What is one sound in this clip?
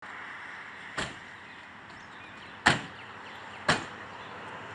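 Knuckles knock on a wooden door a few times.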